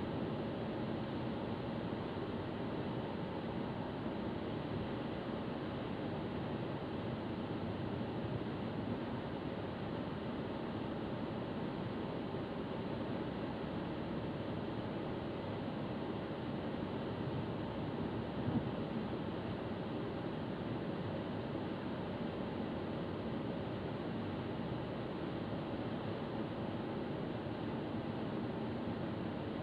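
A car engine hums steadily inside a moving car.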